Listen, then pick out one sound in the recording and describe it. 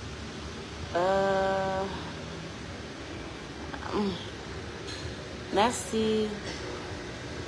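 A woman speaks calmly and close to a phone microphone.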